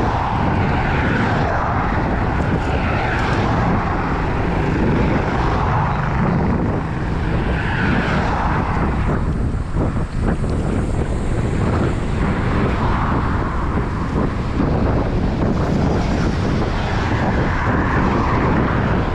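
Bicycle tyres hum on a paved road.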